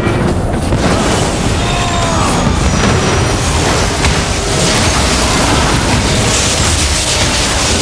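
Crackling electric blasts and magical explosions burst loudly.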